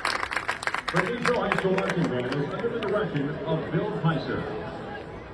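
A marching band's brass plays loud held chords.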